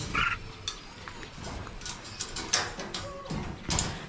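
A wire mesh door rattles and clicks shut.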